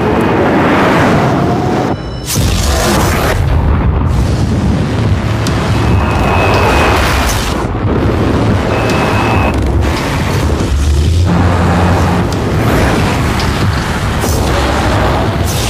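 A sports car speeds past with a rushing whoosh.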